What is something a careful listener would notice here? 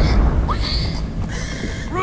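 A pig squeals.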